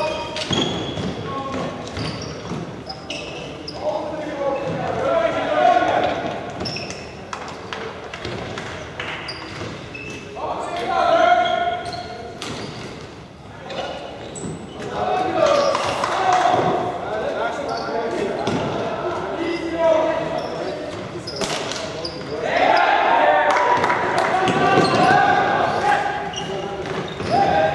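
Players shout and call to each other across a large echoing hall.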